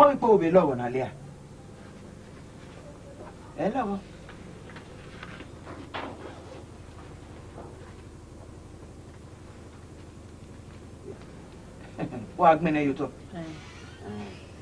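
A middle-aged woman speaks sharply, close by.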